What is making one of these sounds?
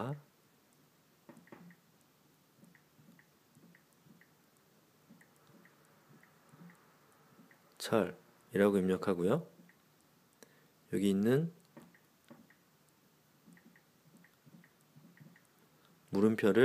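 A finger taps softly on a phone's touchscreen.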